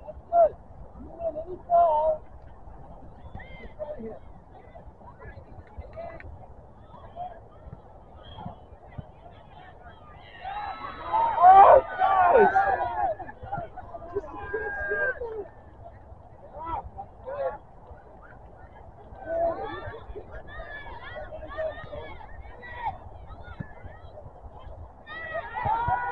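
Young players shout and call out across an open field outdoors.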